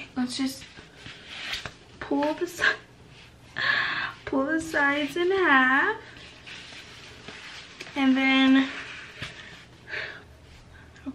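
A young woman talks close up in a playful, animated voice.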